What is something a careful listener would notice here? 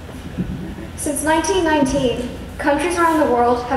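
A young woman speaks through a microphone in a large echoing hall.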